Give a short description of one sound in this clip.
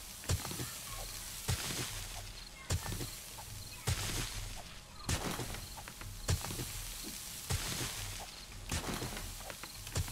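A digging tool strikes earth with repeated thuds at a steady pace.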